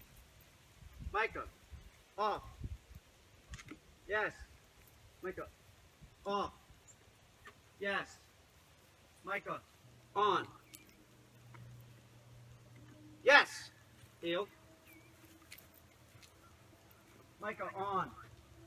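A middle-aged man gives short, sharp commands to a dog.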